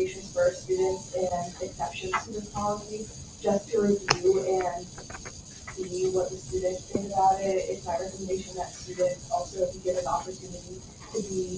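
A woman speaks up close, with animation.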